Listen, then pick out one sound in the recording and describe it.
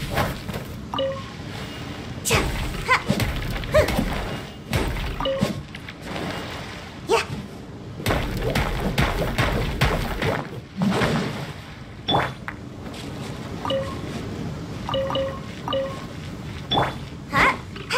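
Chiming pickup tones ring out.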